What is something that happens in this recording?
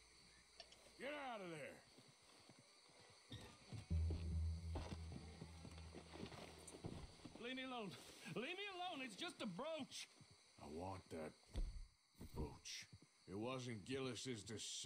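A young man talks into a microphone.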